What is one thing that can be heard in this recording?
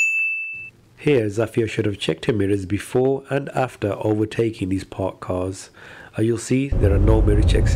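A man speaks calmly from close by.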